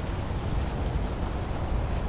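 A stream rushes nearby.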